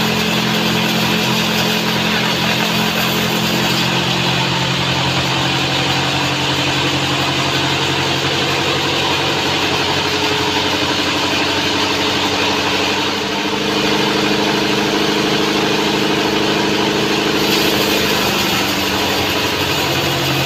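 A machine motor hums loudly and steadily.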